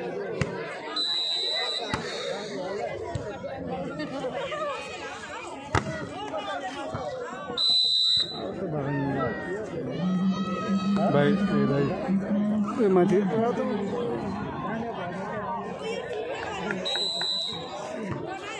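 A referee blows a whistle in short blasts.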